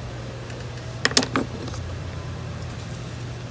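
Loose soil rustles as it is poured from a small scoop.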